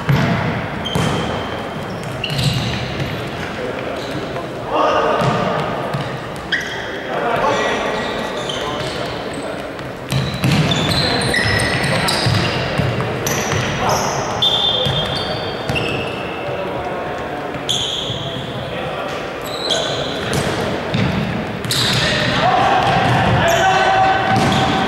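A ball thumps on the floor and is kicked.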